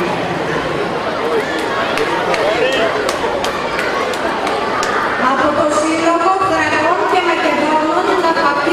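A crowd of men and women murmur and talk quietly outdoors.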